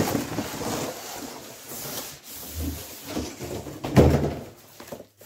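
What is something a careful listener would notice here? Cardboard scrapes and thumps as a box is handled.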